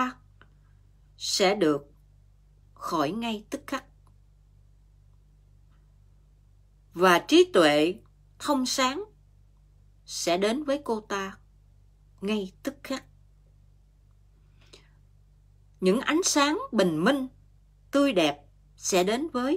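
A middle-aged woman speaks calmly and close to a microphone, with pauses.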